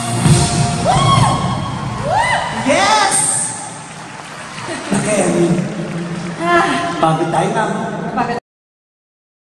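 Two women sing together through microphones.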